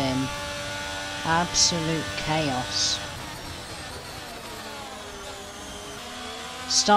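A racing car engine whines loudly, its pitch dropping as gears shift down.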